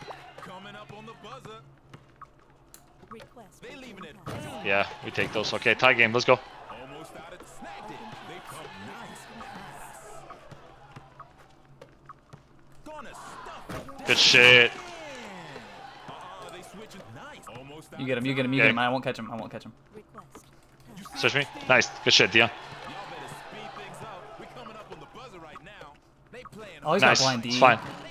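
A basketball bounces on a hard court.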